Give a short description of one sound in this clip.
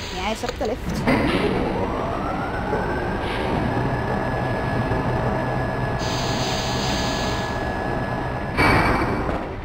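A lift whirs as it rises and comes to a stop.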